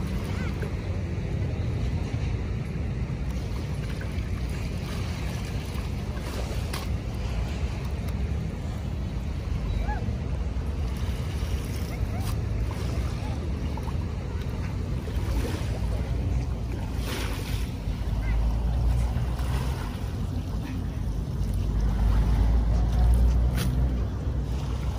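Wind rumbles across an open beach.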